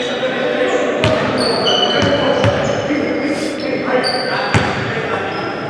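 A basketball bounces on the floor with hollow thuds.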